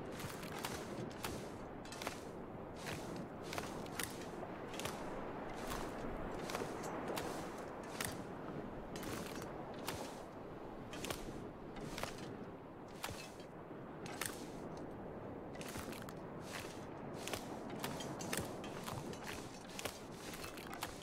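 Footsteps crunch on ice at a steady walking pace.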